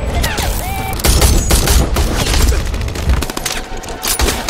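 Rifle shots fire in rapid bursts.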